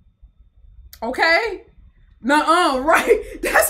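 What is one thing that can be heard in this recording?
A young woman exclaims with animation close to a microphone.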